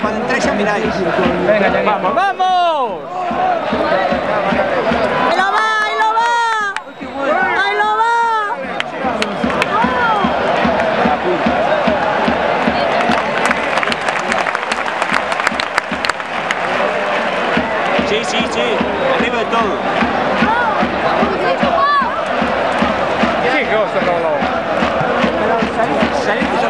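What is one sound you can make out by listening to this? A large stadium crowd chants and roars throughout.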